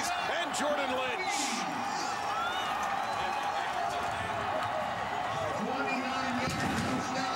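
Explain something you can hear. A large crowd cheers and roars loudly in an open stadium.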